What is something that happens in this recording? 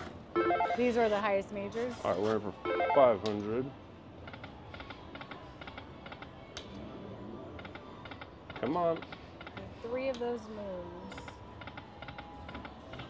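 A slot machine plays electronic chimes and ticks as its reels spin.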